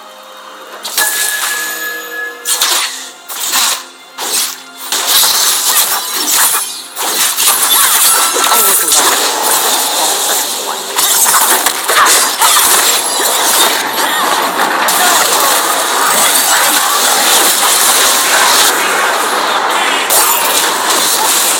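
Video game spell effects and blows crash and whoosh in a busy fight.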